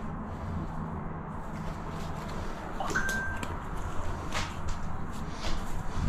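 Rubber gloves rustle and squeak as they are pulled on.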